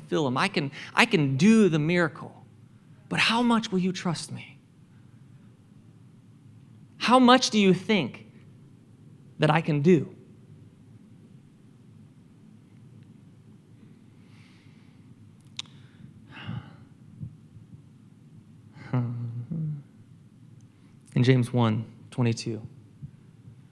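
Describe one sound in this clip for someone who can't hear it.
A man speaks into a microphone with pauses, heard through loudspeakers in a large room.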